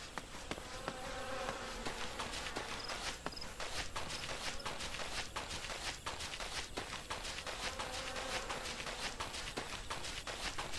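Footsteps crunch steadily over grass and dirt.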